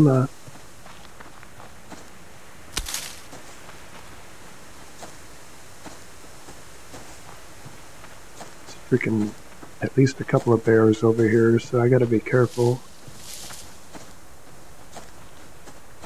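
Footsteps swish through dry grass.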